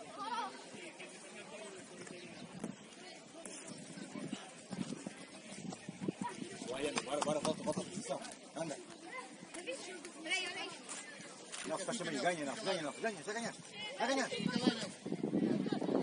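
Children shout and call out across an open outdoor field.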